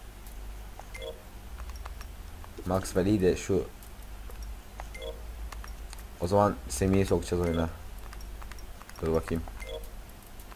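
Soft electronic menu beeps sound now and then.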